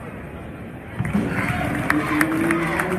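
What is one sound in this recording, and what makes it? Fans cheer loudly.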